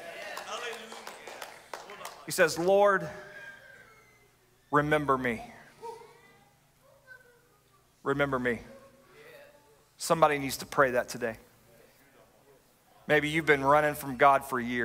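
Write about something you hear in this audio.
A middle-aged man speaks with animation into a microphone in a large hall, pausing between phrases.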